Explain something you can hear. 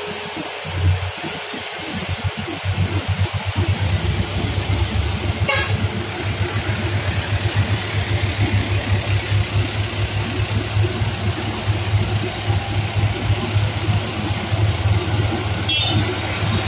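Buses and trucks drive by on a road, their engines droning.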